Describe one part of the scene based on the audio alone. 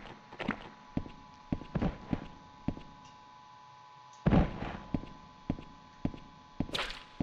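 Footsteps thud steadily on a stone floor.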